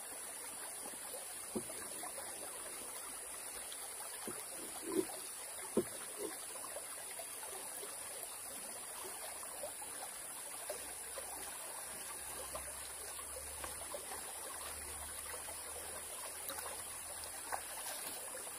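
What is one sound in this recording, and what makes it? Footsteps crunch on loose stones, coming closer.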